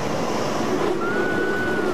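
A young woman screams in the rushing wind.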